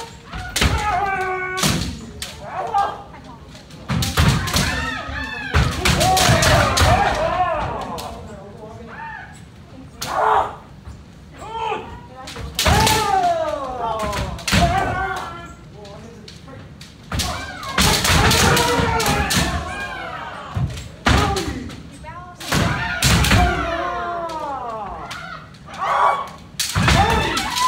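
Several people shout loudly and sharply in a large echoing hall.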